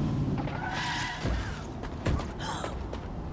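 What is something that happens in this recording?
A car door swings open.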